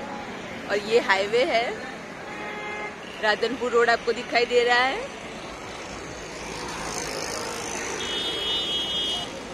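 Traffic hums steadily along a nearby road.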